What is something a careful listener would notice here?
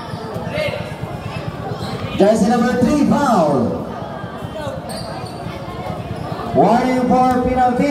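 A crowd of spectators chatters and murmurs outdoors.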